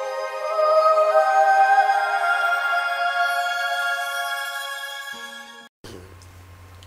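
Music plays with a melody, then fades out.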